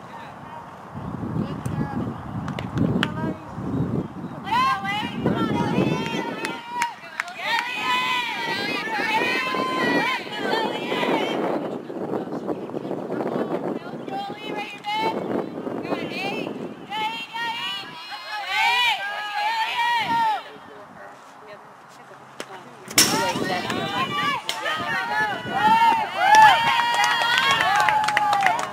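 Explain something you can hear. Young women chant and cheer loudly nearby.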